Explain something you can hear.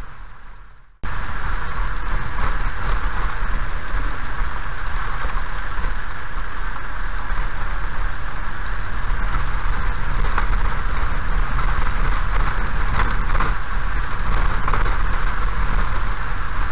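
A car drives along a gravel road with a steady low rumble of tyres.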